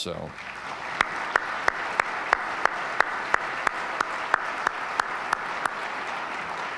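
A man claps his hands close to a microphone.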